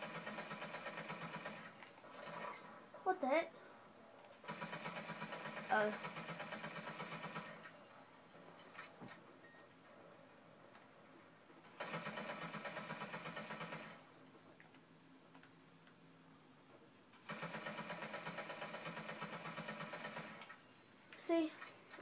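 Electronic game music plays in short bursts through television speakers.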